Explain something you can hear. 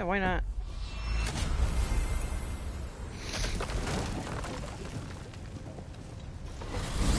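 A magical gateway opens with a rushing, shimmering whoosh.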